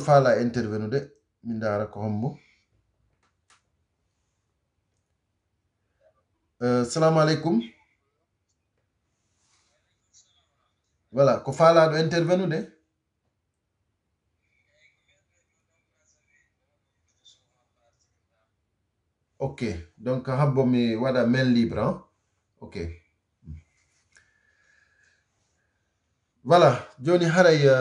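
A man speaks calmly and close up, in short bursts with long pauses.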